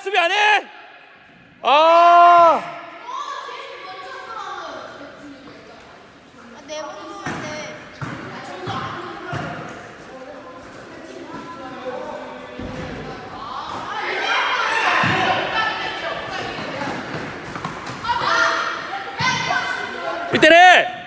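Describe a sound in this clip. Children shout during a game in an echoing gym.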